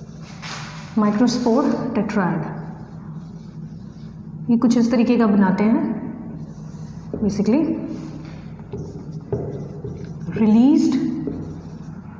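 A woman speaks calmly and clearly, as if teaching.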